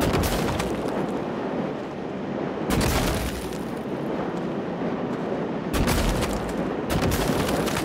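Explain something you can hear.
A foam gun fires in bursts with a loud hissing spray.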